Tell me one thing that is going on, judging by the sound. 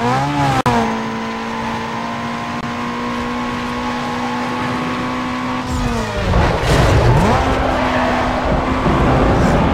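A racing car engine roars at high revs, dropping in pitch as the car slows for a bend.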